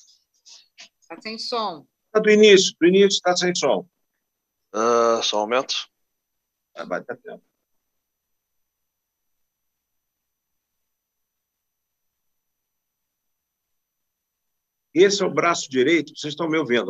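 A man speaks loudly and emphatically through an online call.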